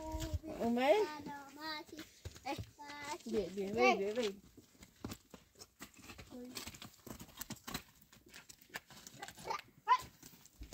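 A donkey's hooves clop and scuff on stony ground.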